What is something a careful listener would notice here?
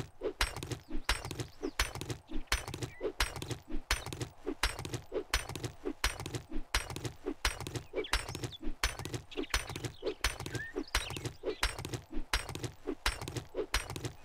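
A stone axe strikes a rock over and over in quick, even blows.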